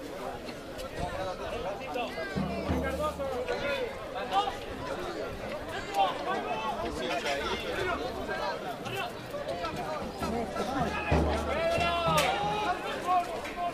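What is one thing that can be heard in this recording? Young men shout calls to each other outdoors at a distance.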